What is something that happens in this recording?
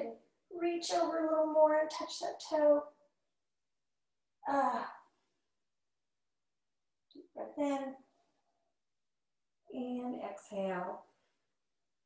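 A woman speaks calmly and clearly close by, with pauses.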